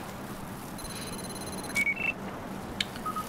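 An electronic scanner beeps in short high tones.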